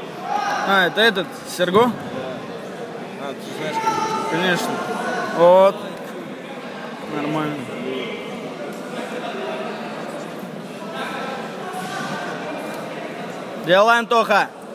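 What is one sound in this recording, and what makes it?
Men shout loudly in a large echoing hall.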